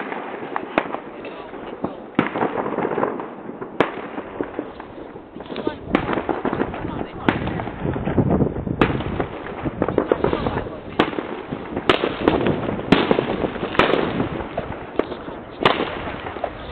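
Fireworks bang and crackle in the distance.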